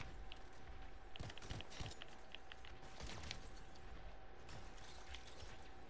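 Fiery energy blasts crackle and burst.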